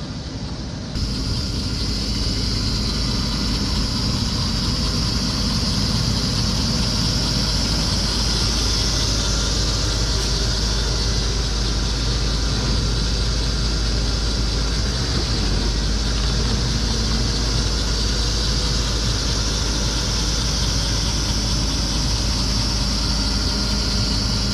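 A diesel armored military truck drives closer.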